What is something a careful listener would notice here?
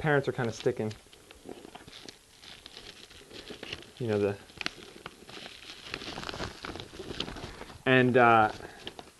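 A young man speaks calmly, close by, in short bursts.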